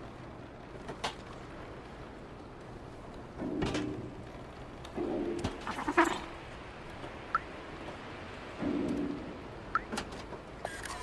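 A cat's paws land with soft thuds on metal roofs.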